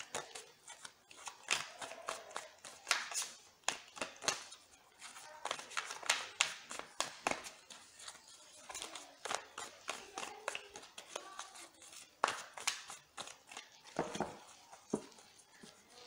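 Playing cards riffle and flick as they are shuffled.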